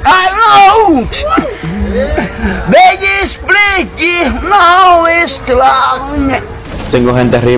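An elderly man sings loudly and with strain close by.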